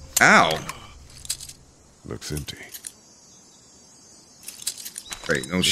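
A shotgun clicks as it is handled.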